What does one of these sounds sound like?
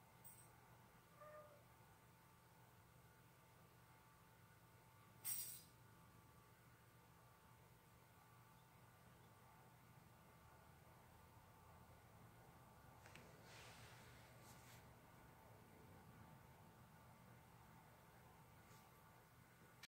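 A ceiling fan whirs steadily.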